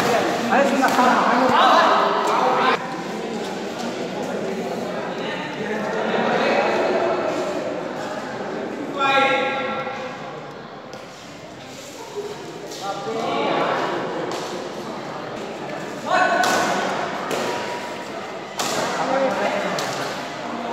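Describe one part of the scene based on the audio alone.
Young men shout and cheer in a large echoing hall.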